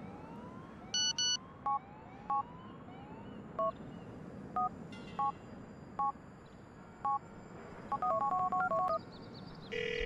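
A phone keypad beeps as a number is dialled.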